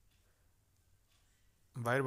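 A pen scratches lightly on paper.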